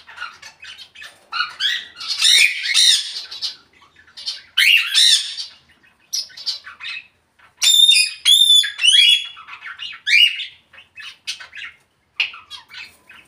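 A parrot squawks, whistles and chatters close by.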